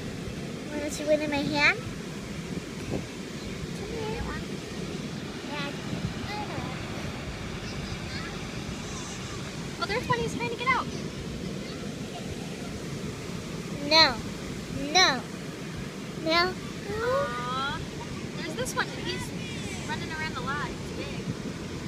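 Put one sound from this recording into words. A young girl speaks and squeals in short bursts close by.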